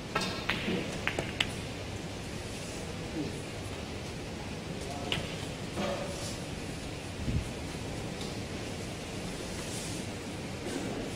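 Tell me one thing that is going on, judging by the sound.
Snooker balls click sharply together.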